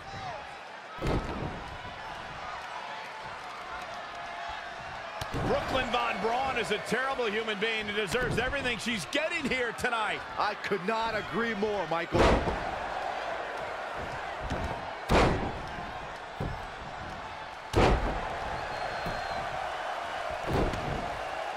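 Bodies slam heavily onto a wrestling mat.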